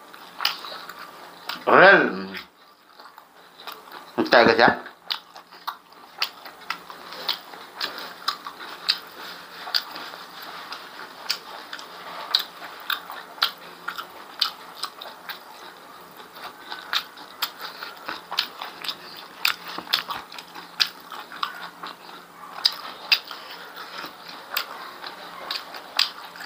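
A young man chews food with wet smacking sounds close to a microphone.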